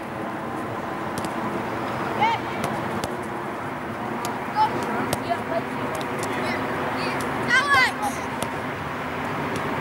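A football is kicked with dull thuds.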